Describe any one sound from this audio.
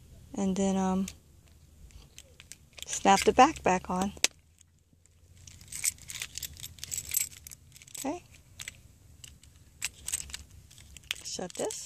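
A plastic key fob casing clicks and snaps together.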